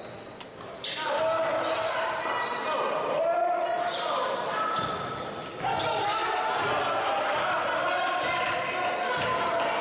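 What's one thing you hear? A crowd cheers and shouts loudly in an echoing gym.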